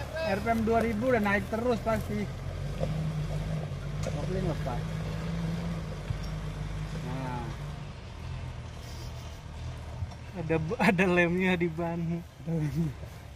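A pickup truck's engine hums and strains as it climbs a dirt slope.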